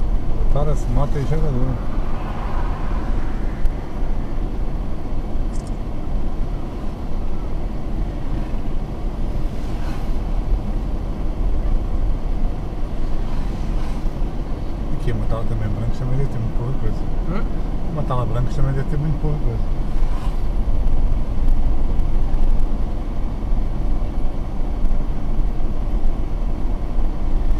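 Tyres rumble steadily on a paved road.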